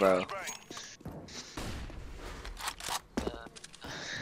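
A rifle is drawn with a metallic click.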